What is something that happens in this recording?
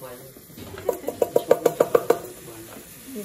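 A metal spoon taps rapidly against a pot.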